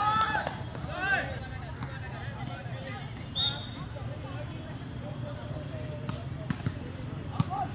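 A volleyball is struck with a thud.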